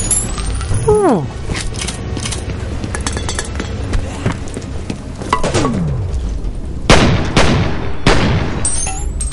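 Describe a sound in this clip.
Pistol shots ring out, echoing in a hard enclosed space.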